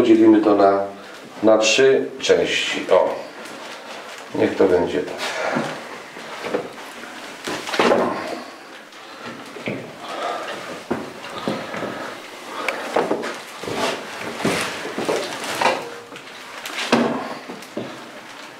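Gloved hands squelch as they knead minced meat.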